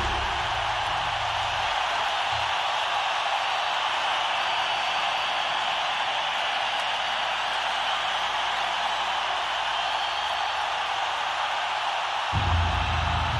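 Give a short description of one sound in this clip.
A large crowd cheers and roars steadily in a big echoing hall.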